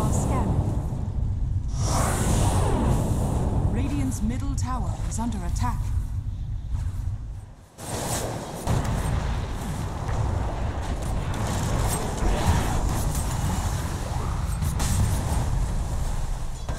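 Magic spells crackle and blast as game characters fight.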